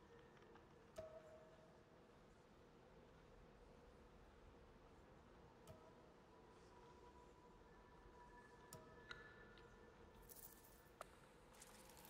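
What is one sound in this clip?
Soft menu clicks sound now and then.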